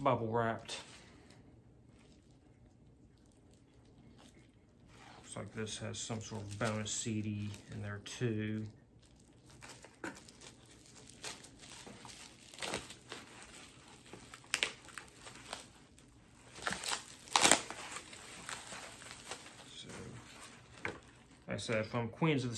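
Plastic packaging crinkles and rustles as it is torn open.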